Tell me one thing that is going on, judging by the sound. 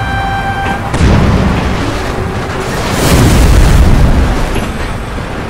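A train crashes into a truck with a loud metallic crunch.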